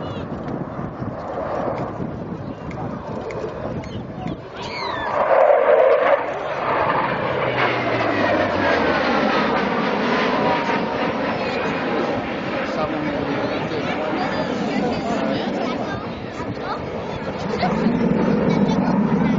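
A jet engine roars overhead and slowly fades into the distance.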